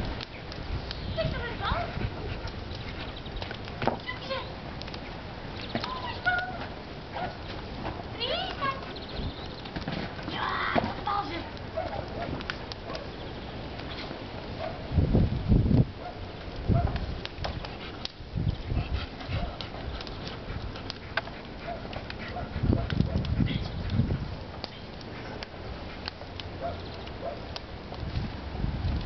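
A dog digs fast in soft soil, scraping and scattering earth.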